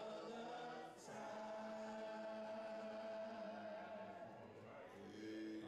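A second man sings along through another microphone.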